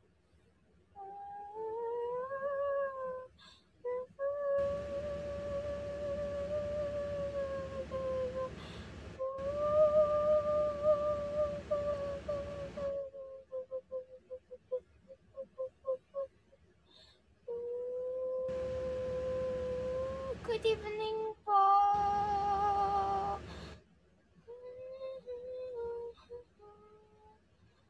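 A young woman sings softly close to a phone microphone.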